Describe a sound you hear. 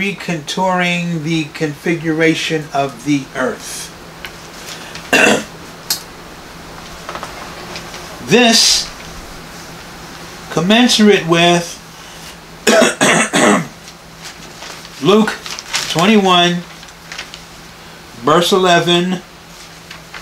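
An elderly man speaks calmly and close by, in short phrases with pauses.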